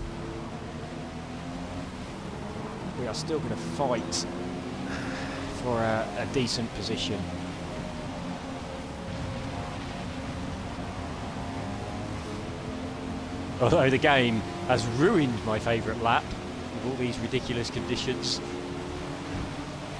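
Rain patters on a car's windscreen.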